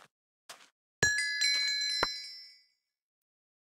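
A magic block bursts open with a bright tinkling chime.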